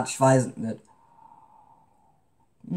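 A woman sips a drink from a mug.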